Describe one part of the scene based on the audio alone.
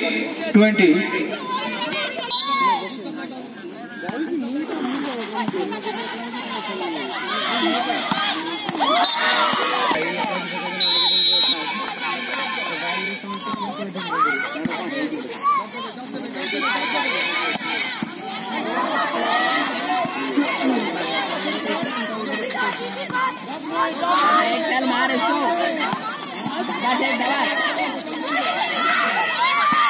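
A crowd of young women and men shout and cheer outdoors.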